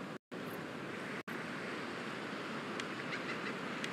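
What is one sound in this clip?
Waves wash softly onto a shore nearby.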